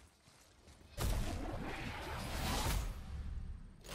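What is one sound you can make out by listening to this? A loud magical blast bursts and crackles.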